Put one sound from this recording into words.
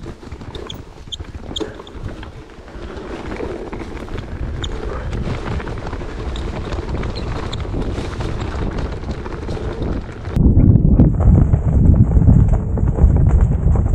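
Bicycle tyres roll and crunch over a dirt and stone trail.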